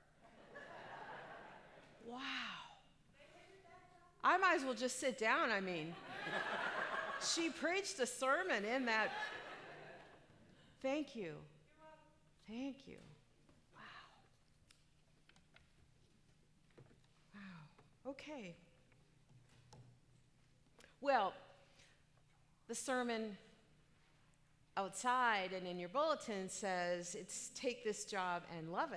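A middle-aged woman speaks through a microphone in a large echoing hall, pausing between phrases.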